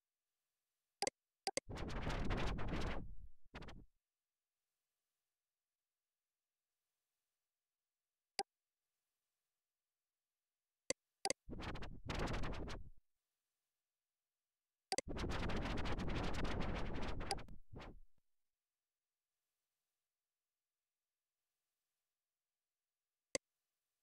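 A mouse button clicks sharply now and then.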